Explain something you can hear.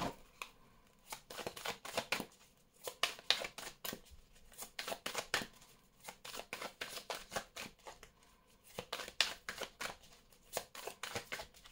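Playing cards slap softly together as a deck is shuffled by hand.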